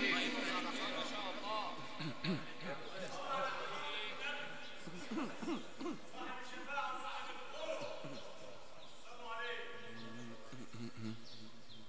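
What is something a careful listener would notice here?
Men in a crowd murmur quietly.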